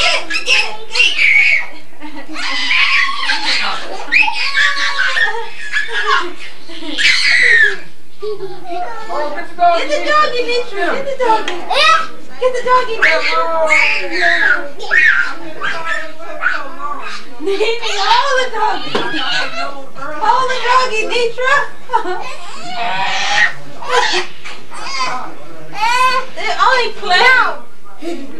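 Young children shout and squeal excitedly nearby.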